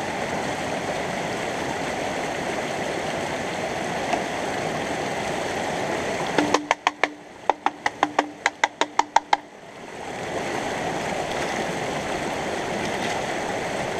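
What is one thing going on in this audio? Water splashes as it is poured out.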